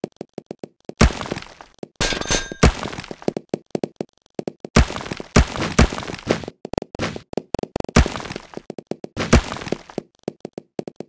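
Blocks crash and break apart.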